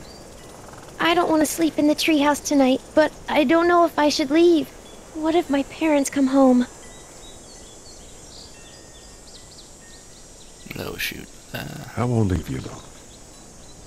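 A man speaks calmly and gently.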